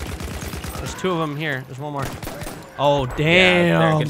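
A man shouts excitedly close to a microphone.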